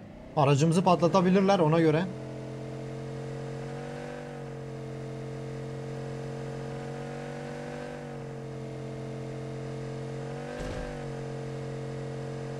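A sports car engine hums steadily as the car drives.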